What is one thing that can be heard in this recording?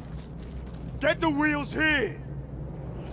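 A man speaks a short gruff line close by.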